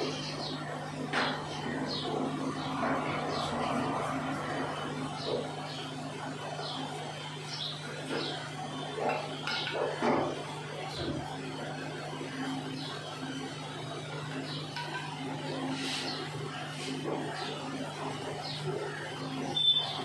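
A brush swishes and scratches through hair.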